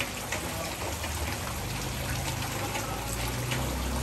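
Water splashes as a net is dipped into a shallow tank.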